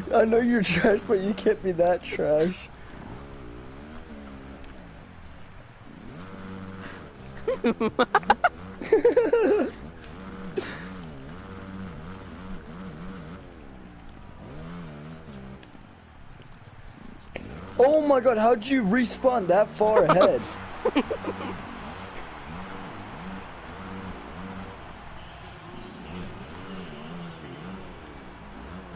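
A dirt bike engine revs up and down as it races.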